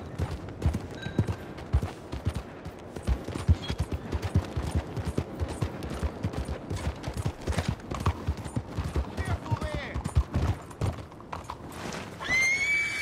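Horse hooves clop steadily on cobblestones.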